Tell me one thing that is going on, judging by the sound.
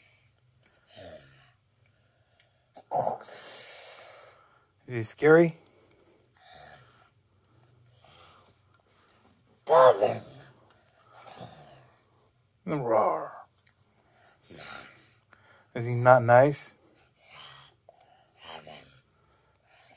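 A young boy speaks and makes playful voice sounds in short bursts, close up.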